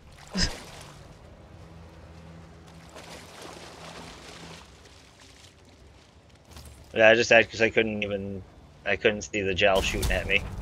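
Footsteps splash through shallow water.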